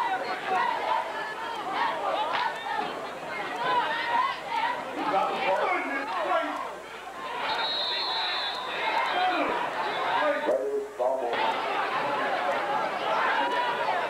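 A crowd of people cheer and shout outdoors.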